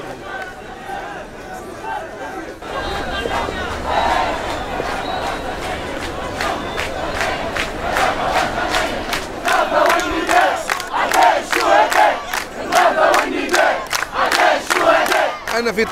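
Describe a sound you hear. A large crowd chants loudly outdoors.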